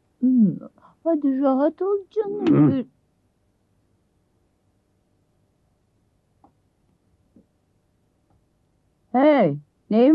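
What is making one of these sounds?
A young woman speaks emphatically up close.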